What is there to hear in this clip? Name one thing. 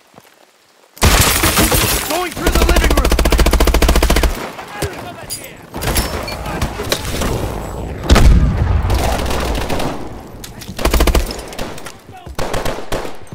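Rapid gunfire rattles loudly, in bursts.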